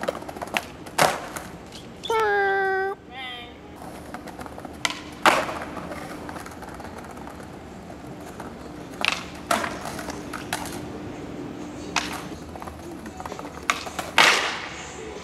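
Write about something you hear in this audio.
A skateboard smacks down on the ground with sharp cracks and clatters.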